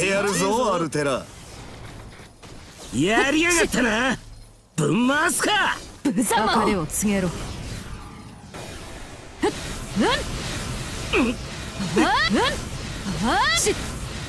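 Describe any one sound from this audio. Magic blasts burst with loud whooshing bangs.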